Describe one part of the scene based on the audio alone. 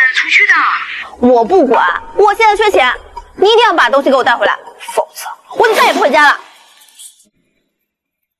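A young woman talks angrily, close by.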